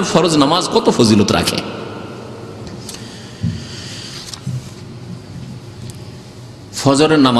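A man speaks with feeling into a microphone, pausing between phrases.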